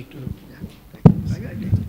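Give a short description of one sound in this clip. A microphone is handled and knocks with a loud thump.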